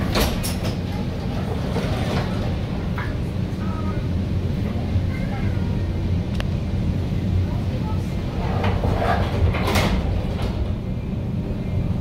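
A train rumbles steadily as it moves along.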